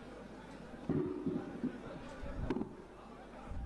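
A microphone is bumped with dull thuds.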